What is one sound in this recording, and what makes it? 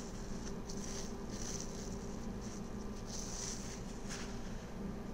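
A plastic bag crinkles softly.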